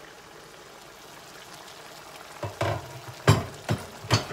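A pot lid clinks as it is lifted off a pan.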